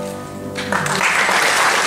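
A final chord on an upright piano rings out and fades.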